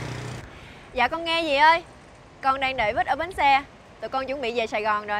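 A young woman talks on a phone in a clear, lively voice.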